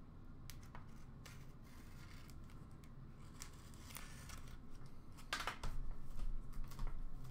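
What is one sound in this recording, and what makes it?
Hands handle and tap a cardboard box.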